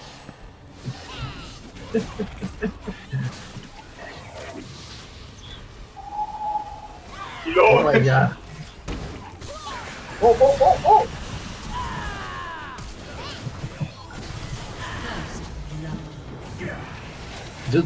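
Spell blasts and weapon clashes from a fantasy battle game crackle and whoosh.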